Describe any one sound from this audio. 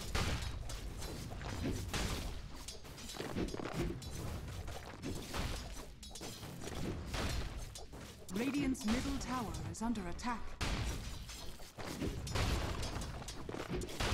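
Game weapons clash and spells crackle in a fight.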